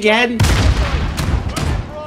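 A video game shotgun fires a blast.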